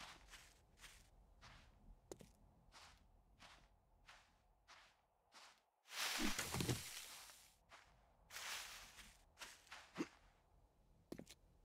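Footsteps crunch steadily on dry, gravelly ground.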